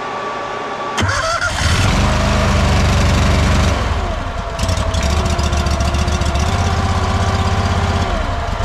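A small engine starts up and runs with a loud, chugging rumble.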